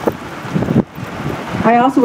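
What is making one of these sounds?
A middle-aged woman speaks into a microphone through a loudspeaker outdoors.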